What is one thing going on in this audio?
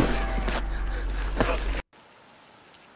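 A monster lets out a loud, harsh roar that cuts off suddenly.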